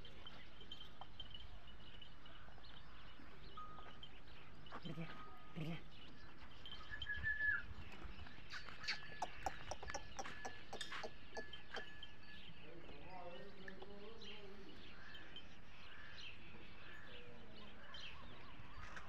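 A buffalo munches fodder close by.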